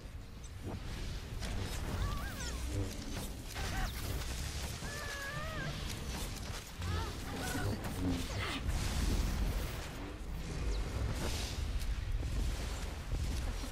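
Energy blasts crackle and zap in a fight.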